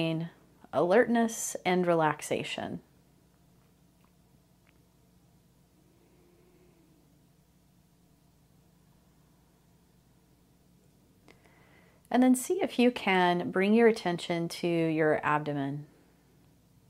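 A woman speaks calmly and softly into a microphone, with long pauses.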